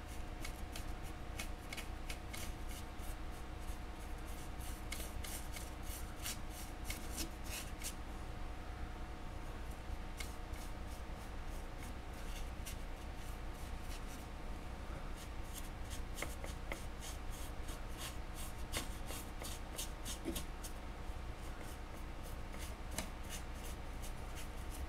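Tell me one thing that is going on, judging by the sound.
A small brush dabs softly against a metal sculpture.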